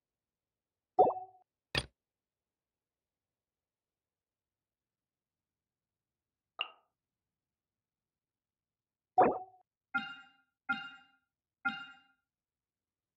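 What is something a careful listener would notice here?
Short menu chimes and clicks sound now and then.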